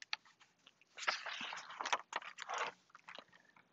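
A page of a book rustles as it is turned.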